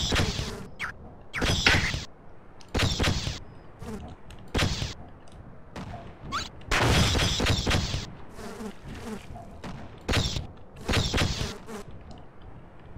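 A crowbar clangs against metal in loud, sharp bursts.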